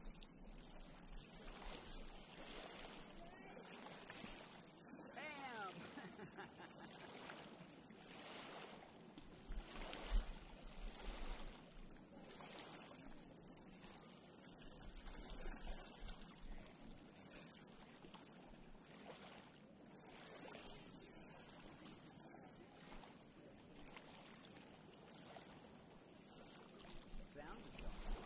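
Small waves lap gently against a pebble shore.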